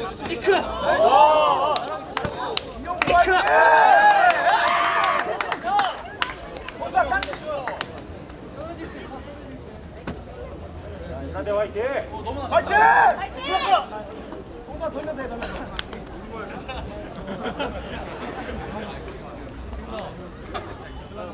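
A large outdoor crowd murmurs in the background.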